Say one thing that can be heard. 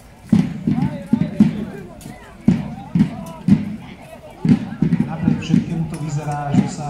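Muskets fire in loud, sharp bangs, one after another, outdoors.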